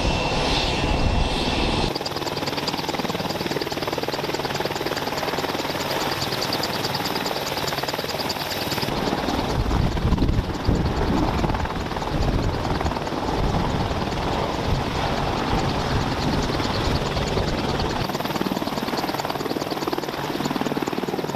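A helicopter's rotor blades thump steadily close by.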